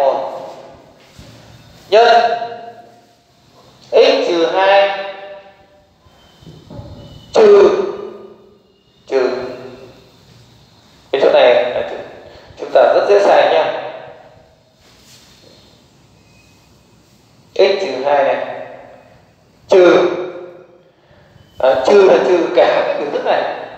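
A man speaks clearly in short phrases, close by.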